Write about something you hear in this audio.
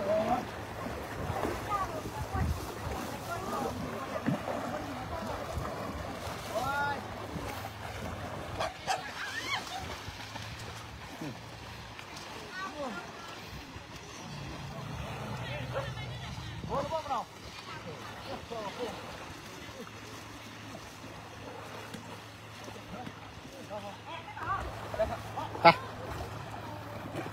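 Water splashes and sloshes as elephants wade through it.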